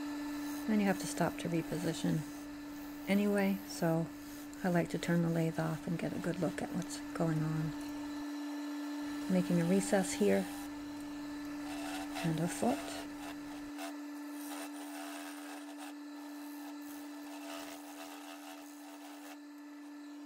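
A gouge cuts into a spinning dry maple bowl on a wood lathe.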